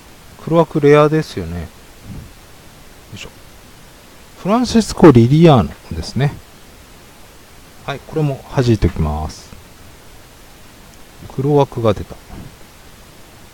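A young man talks in short bursts close to a microphone.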